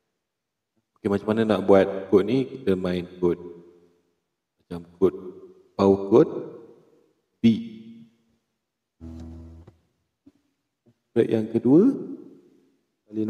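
An acoustic guitar strums chords in short bursts, each ringing out and fading.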